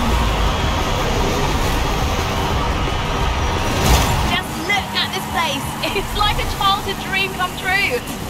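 A car engine roars as the car speeds along.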